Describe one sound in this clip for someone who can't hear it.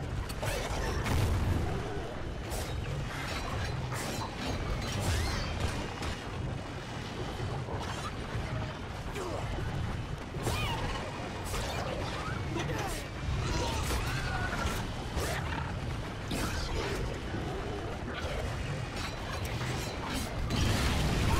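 Monsters screech and roar close by.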